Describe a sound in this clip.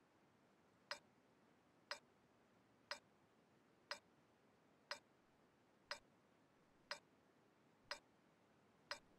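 A countdown timer ticks once every second.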